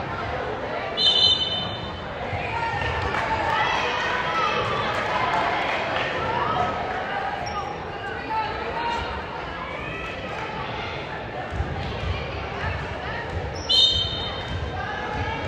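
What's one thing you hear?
A referee's whistle blows sharply, twice.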